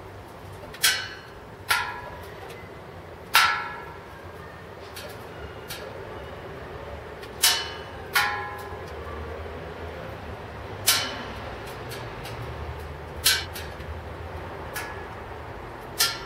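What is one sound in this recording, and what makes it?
Hot metal ticks and pings sharply as it cools.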